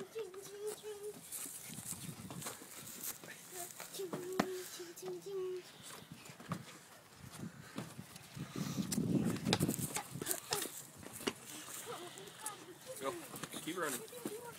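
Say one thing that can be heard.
A young boy's feet thump on a wooden trailer deck.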